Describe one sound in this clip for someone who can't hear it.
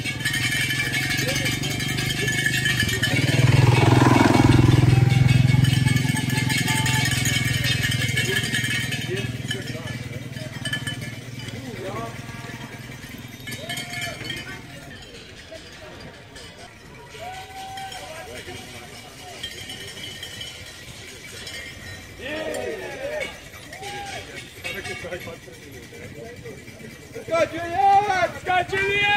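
Bicycle tyres crunch over a dirt track as riders pass.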